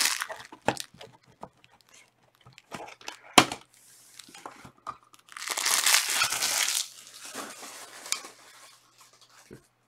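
A plastic wrapper crinkles and rustles between fingers.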